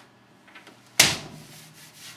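A hand slaps a sheet of paper against a wooden door with a sharp smack.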